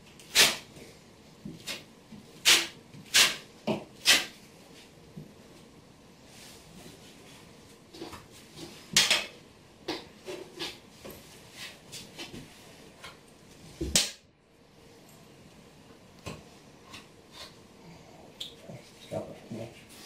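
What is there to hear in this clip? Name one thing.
A putty knife scrapes and taps against a wall.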